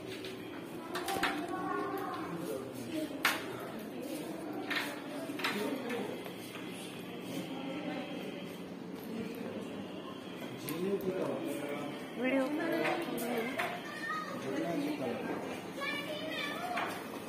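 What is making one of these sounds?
People talk in the background indoors.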